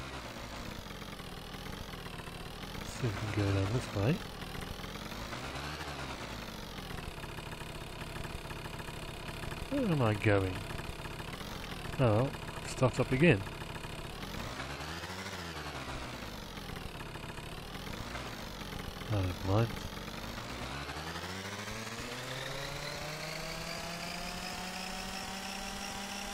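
A motorbike engine hums, its pitch wavering up and down, then revs up steadily toward the end.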